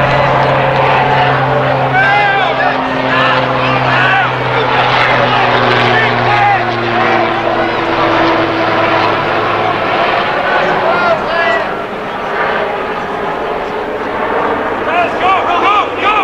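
Spectators chatter and call out from the stands nearby.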